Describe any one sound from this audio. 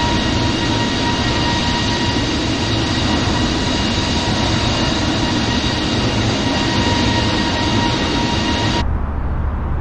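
Jet engines roar loudly with a steady whine.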